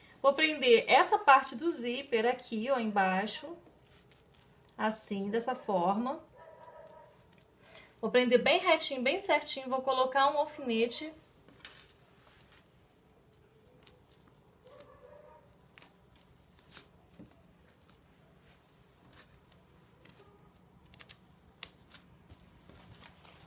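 Fabric rustles and crinkles under handling hands.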